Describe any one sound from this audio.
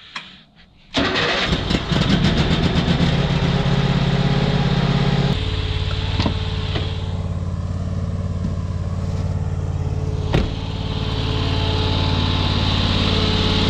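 An engine starts up and runs with a loud, steady drone.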